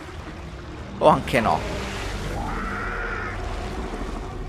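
A large creature thrashes and splashes heavily in water.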